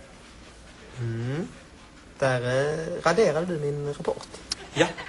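A man speaks in a puzzled, drawn-out voice close by.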